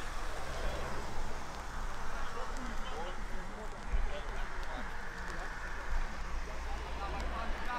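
Men talk animatedly nearby outdoors.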